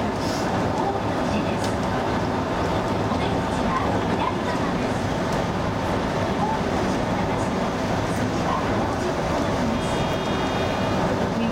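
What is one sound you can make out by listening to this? A train's electric motors hum steadily.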